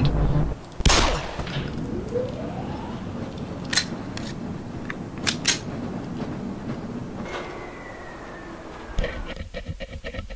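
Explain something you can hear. A rail cart rumbles and rattles along metal tracks.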